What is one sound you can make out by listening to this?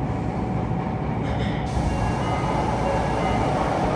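Sliding train doors open with a hiss.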